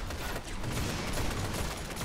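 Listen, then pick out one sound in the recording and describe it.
A rifle fires in quick shots.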